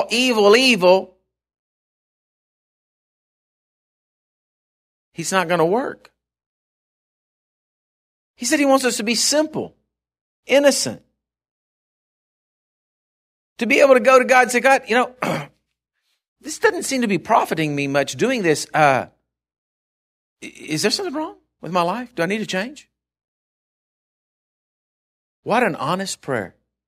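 A middle-aged man speaks with animation into a microphone, with long pauses between phrases.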